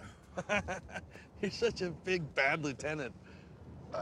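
A man talks.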